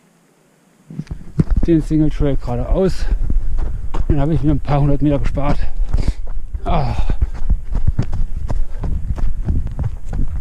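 Footsteps thud quickly on a dirt trail.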